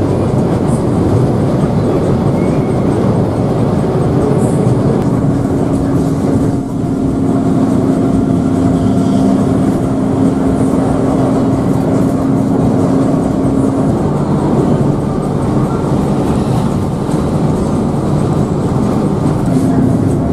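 A bus engine hums steadily from inside the cab.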